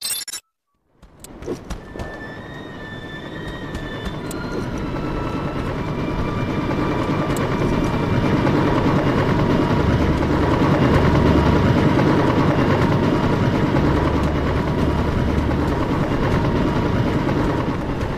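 A helicopter's rotor whirs and grows steadily louder as it approaches.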